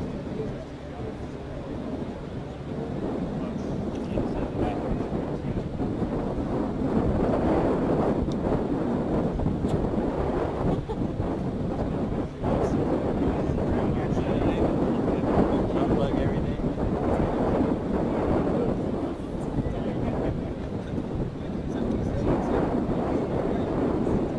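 A hovercraft's engines roar steadily.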